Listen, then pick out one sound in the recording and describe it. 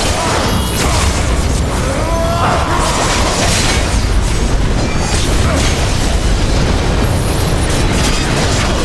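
Weapons clash and strike repeatedly in a fight.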